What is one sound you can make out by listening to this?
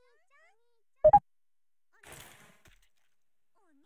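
A keypad beeps as buttons are pressed.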